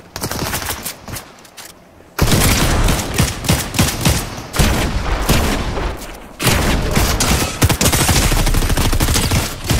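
A gun fires rapid shots.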